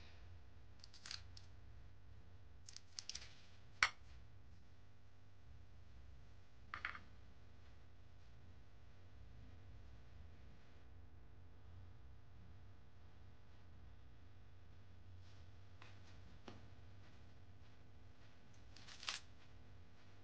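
Crisp fried pastry crackles and crunches as fingers tear it apart.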